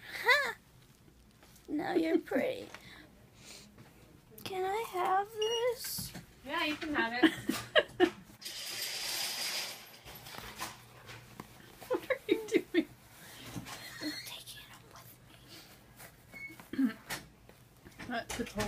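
A young woman speaks drowsily and slowly, close by.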